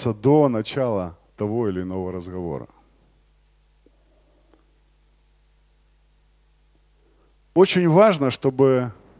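A man speaks with animation through a microphone, pausing between phrases.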